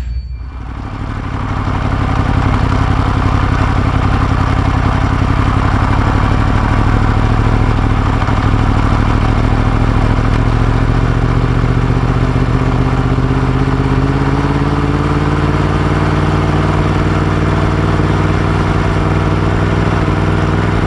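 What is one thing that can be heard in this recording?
A motorcycle engine hums steadily at low speed, its pitch rising slightly as it speeds up.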